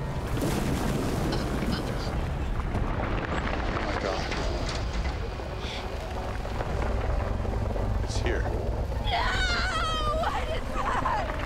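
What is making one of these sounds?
A young woman cries out in fear.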